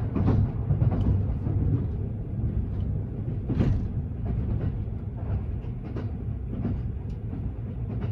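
A level crossing bell rings briefly as the train passes.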